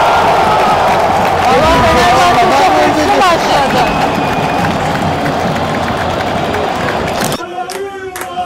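A large stadium crowd roars and chants.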